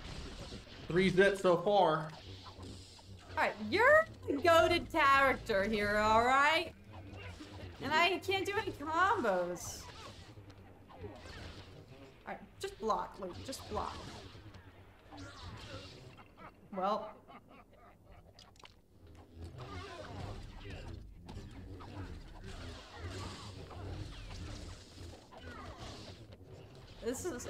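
Lightsabers hum and clash in a game.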